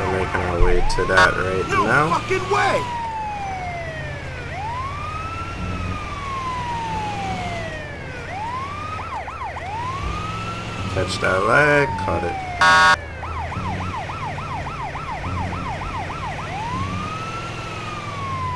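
An ambulance siren wails, switching between slow sweeps and fast yelps.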